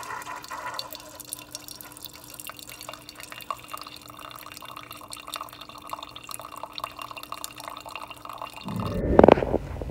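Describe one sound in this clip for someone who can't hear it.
Coffee trickles into a mug from a brewing machine.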